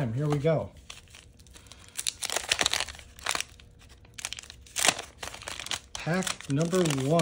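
A paper wrapper crinkles and tears.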